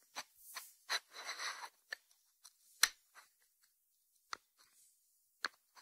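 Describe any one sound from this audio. A ceramic dish slides on a wooden board.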